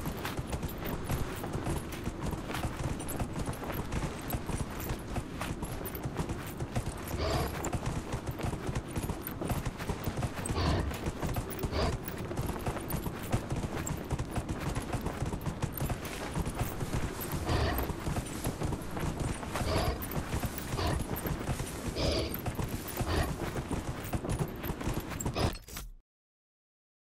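Hooves pound quickly as a horse gallops over sand and grass.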